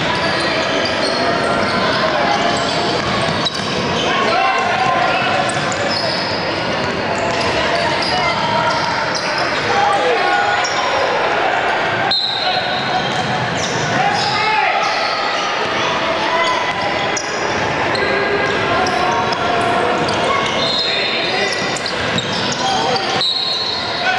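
Young boys shout and call out across a large echoing gym.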